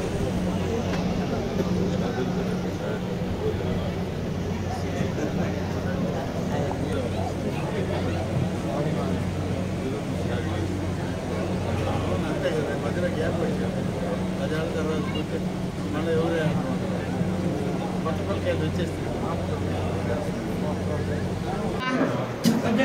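A crowd of men murmurs and chatters outdoors.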